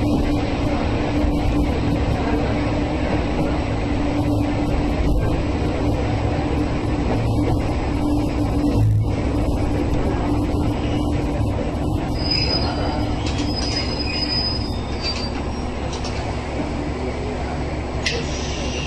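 A train engine rumbles steadily as the train rolls along the track.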